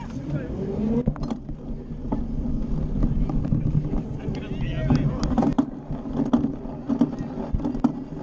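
Bicycle tyres rumble over a rough path.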